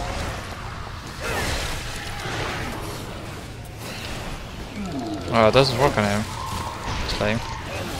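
Gunfire blasts in bursts.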